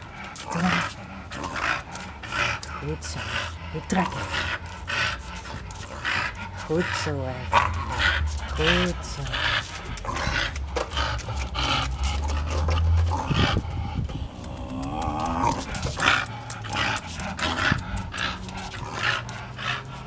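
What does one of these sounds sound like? A dog growls while tugging on a rope.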